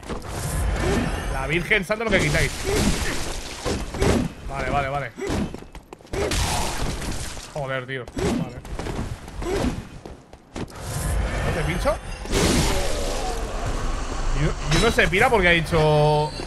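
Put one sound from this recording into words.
Blades clash and slash in combat.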